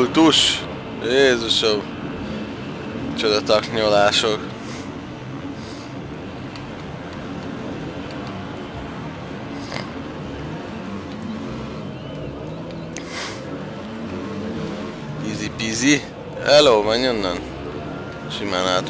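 Motorcycle engines roar and rev up and down.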